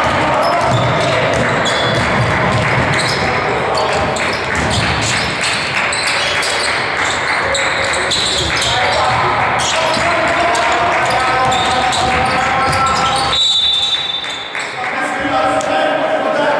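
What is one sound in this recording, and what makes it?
Teenage boys shout to each other during a basketball game.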